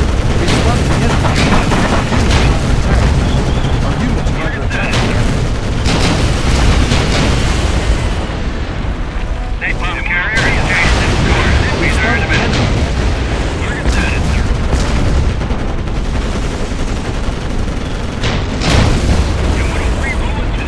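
Tank cannons fire in a video game battle.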